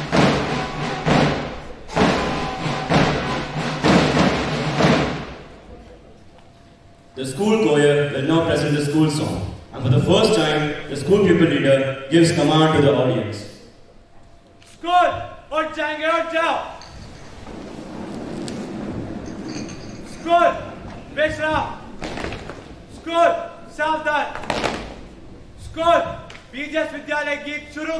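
A man speaks loudly through a microphone in a large echoing hall.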